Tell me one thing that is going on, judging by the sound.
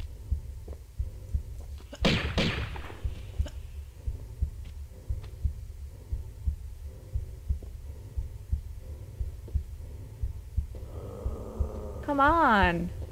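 Quick footsteps thud on a stone floor.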